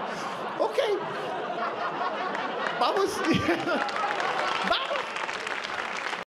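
An audience laughs and claps.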